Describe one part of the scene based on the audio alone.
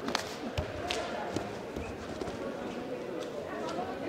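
A body thuds onto a mat.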